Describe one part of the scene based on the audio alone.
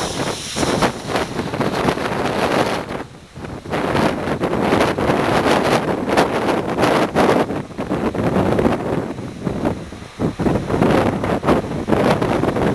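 Wind gusts and buffets loudly outdoors, rising and dropping.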